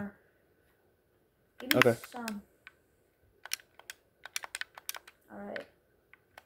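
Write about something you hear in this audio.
Quick clicks sound as items are moved in a video game menu.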